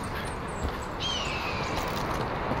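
An eagle screeches overhead.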